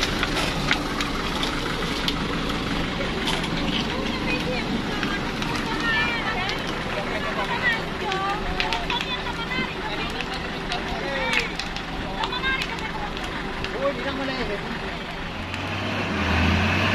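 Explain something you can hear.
A heavy truck engine rumbles steadily nearby.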